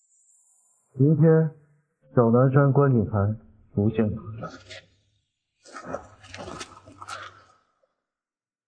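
A young man talks into a mobile phone.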